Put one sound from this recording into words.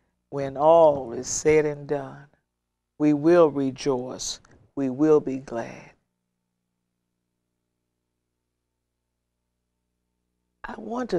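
A middle-aged woman speaks calmly and expressively into a close microphone.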